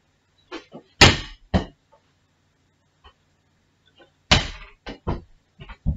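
A ball bounces and thuds on a floor.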